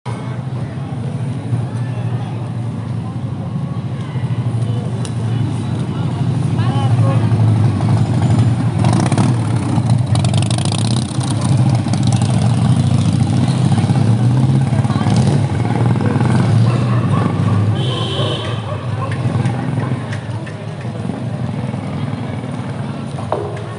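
A busy street murmurs with distant voices and traffic outdoors.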